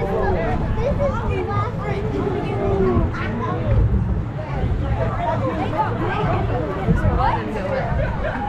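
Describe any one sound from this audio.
Water splashes and rushes around a moving boat.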